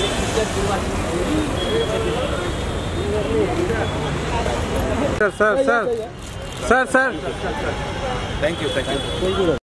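A crowd of people chatter and call out outdoors.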